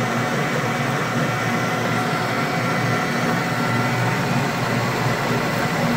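A metal lathe spins with a steady whirring hum.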